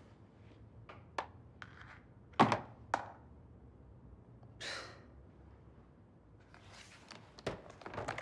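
Small objects clack on a desk.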